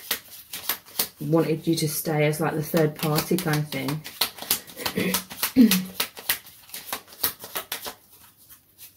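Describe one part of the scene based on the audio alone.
Playing cards are shuffled with quick, crisp flicks.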